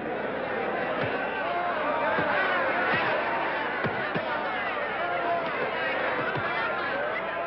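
Gloved punches thud.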